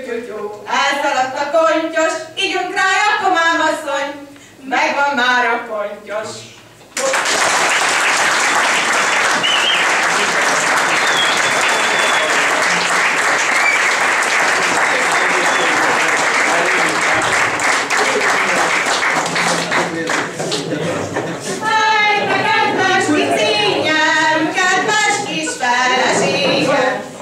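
Young women sing together in a room.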